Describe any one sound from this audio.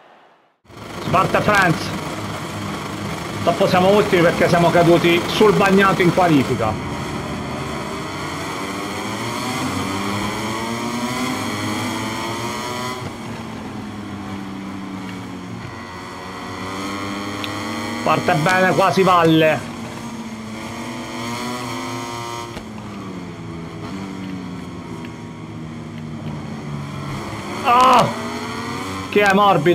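Racing motorcycle engines roar and rise in pitch as they speed up.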